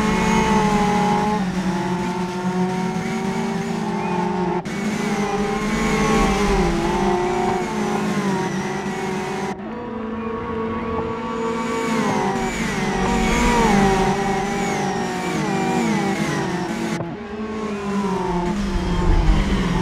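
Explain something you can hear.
Racing car engines roar and rev up and down as the cars speed past.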